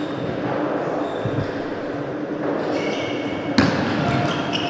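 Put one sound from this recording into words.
A ball clicks sharply off paddles and a table in a quick rally.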